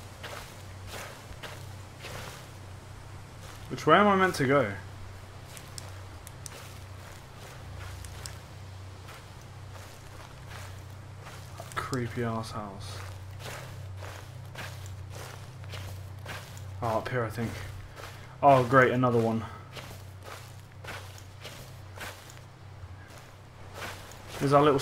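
Footsteps crunch steadily over gravel and grass.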